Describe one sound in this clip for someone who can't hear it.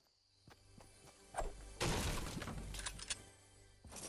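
A wooden window creaks open.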